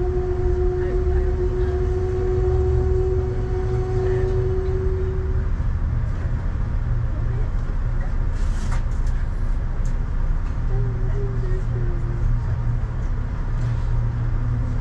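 A train rumbles along with a low, steady roar.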